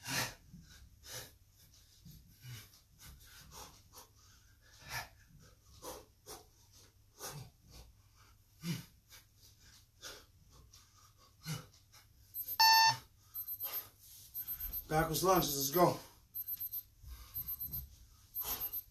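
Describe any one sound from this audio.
Feet shuffle and thump on a floor.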